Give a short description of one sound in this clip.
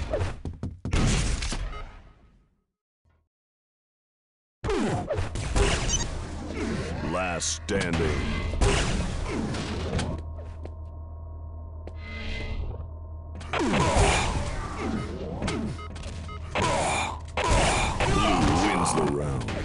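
Video game gunfire and explosions play loudly.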